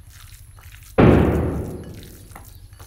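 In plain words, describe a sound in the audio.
A game piece clacks down onto a board.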